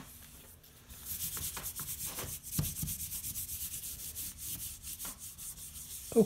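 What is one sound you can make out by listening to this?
A hand rubs briskly back and forth over a sheet of paper.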